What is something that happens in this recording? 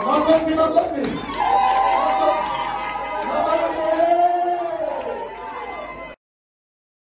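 Several men sing together through loudspeakers.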